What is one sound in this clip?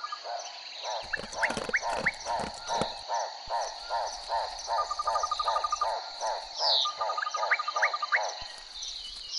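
Paws patter quickly on dry ground as big cats run.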